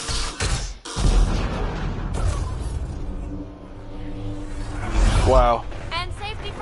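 A spaceship engine roars loudly as it flies past.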